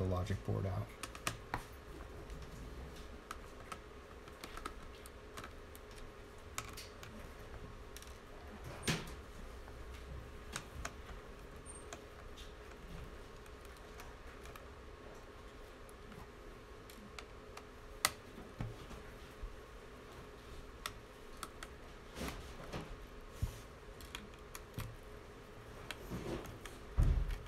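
Plastic parts clatter and knock on a table.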